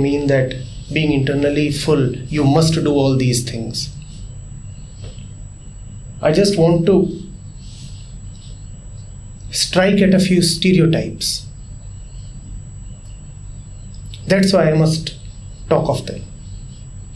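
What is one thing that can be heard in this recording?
A man speaks calmly and with emphasis into a close microphone, in short bursts with pauses.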